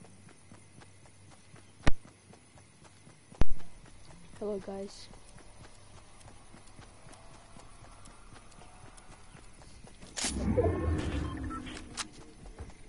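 Footsteps run quickly over grass.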